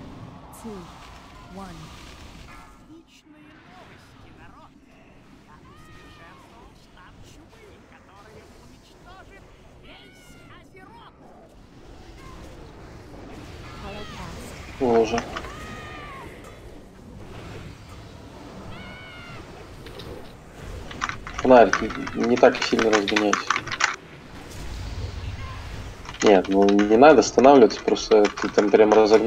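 Magic spells crackle and whoosh during a fantasy battle.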